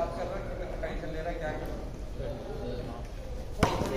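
A cricket bat strikes a ball indoors.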